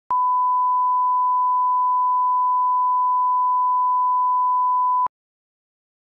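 A steady, high-pitched test tone sounds and then cuts off.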